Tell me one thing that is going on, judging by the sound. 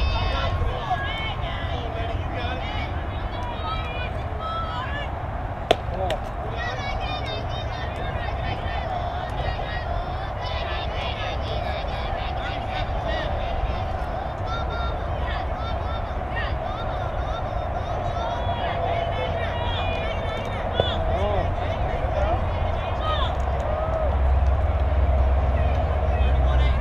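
Young girls cheer and chatter in the distance outdoors.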